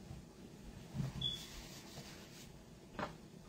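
A man blows his nose softly into a tissue.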